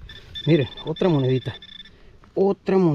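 A metal detector gives a steady high beep.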